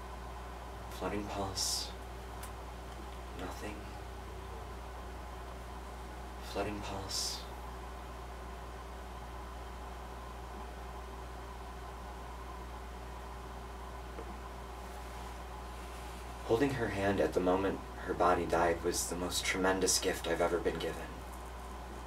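A young man speaks slowly and dramatically, with long pauses.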